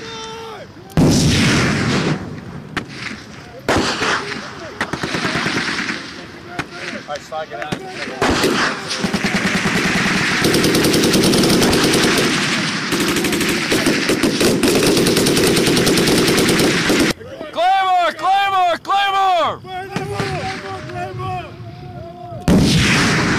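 A heavy explosion booms and rumbles outdoors.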